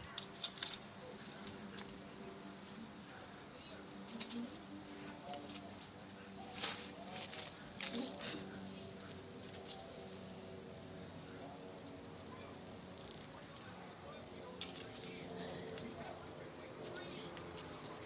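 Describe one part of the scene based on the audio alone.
Dry leaves rustle under a cat's paws.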